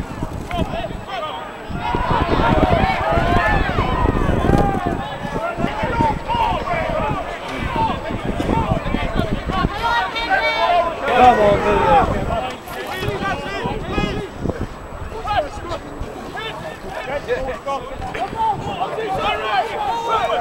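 A crowd of spectators cheers and shouts in the distance outdoors.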